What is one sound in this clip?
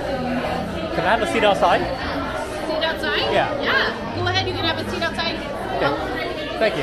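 A woman speaks nearby in a friendly way.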